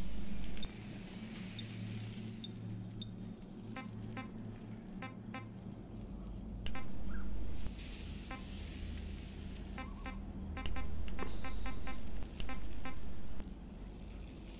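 Short electronic menu beeps click again and again.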